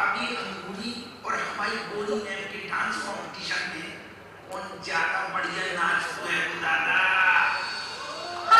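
An elderly man talks loudly with animation.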